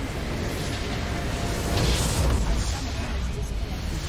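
A crystal structure shatters with a loud crash.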